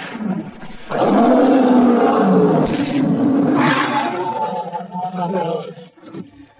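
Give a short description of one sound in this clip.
A beast roars loudly and fiercely.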